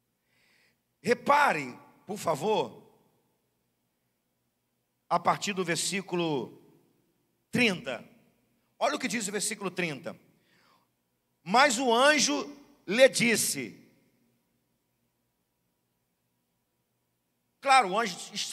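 A middle-aged man speaks through a microphone with pauses, in a calm, earnest way.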